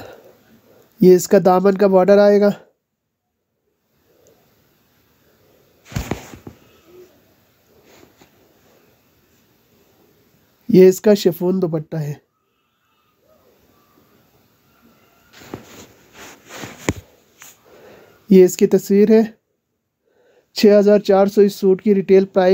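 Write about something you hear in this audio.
Cloth rustles as it is unfolded and spread out.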